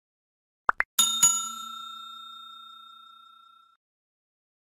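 A bell chimes once and rings out.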